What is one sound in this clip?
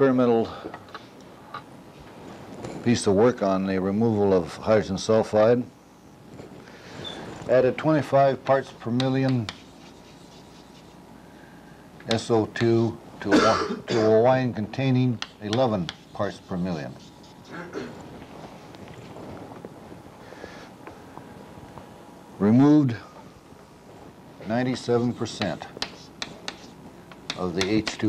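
An elderly man lectures calmly through a microphone.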